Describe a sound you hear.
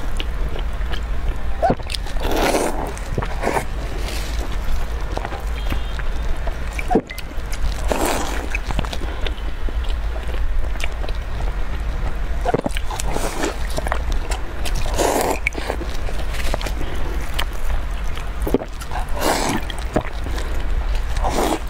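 A young woman bites and chews soft bread up close to a microphone.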